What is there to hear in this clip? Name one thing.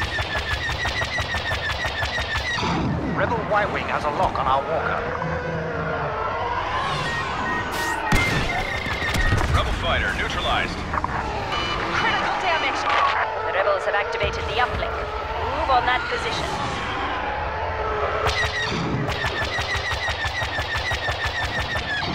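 A starfighter engine roars steadily.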